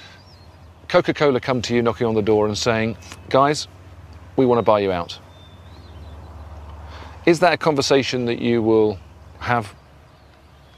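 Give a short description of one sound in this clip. A middle-aged man speaks calmly and earnestly up close.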